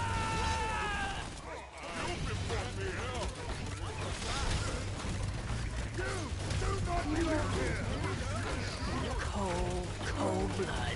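Game spells and weapon blows clash and burst.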